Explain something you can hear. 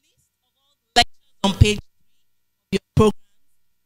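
A woman speaks through a microphone in short loud bursts.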